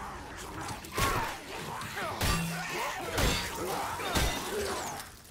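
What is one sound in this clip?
Heavy blows thud.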